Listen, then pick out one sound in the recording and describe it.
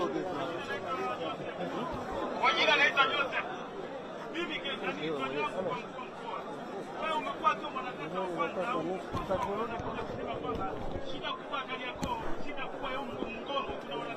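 A man shouts through a megaphone outdoors.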